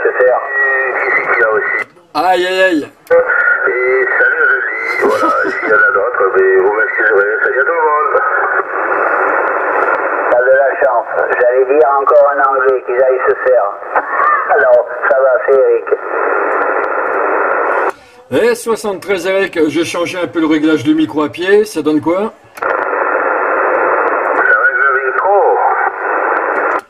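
Voices crackle through a radio loudspeaker, narrow and tinny.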